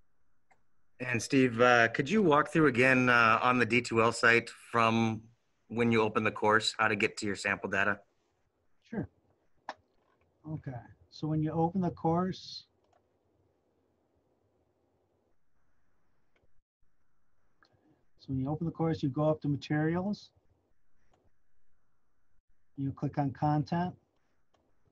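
A man talks calmly, heard through an online call.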